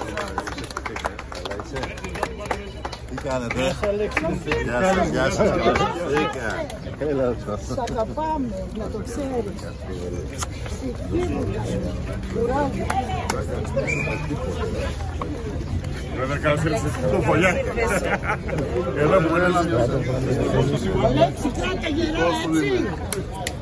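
A man talks warmly and cheerfully up close.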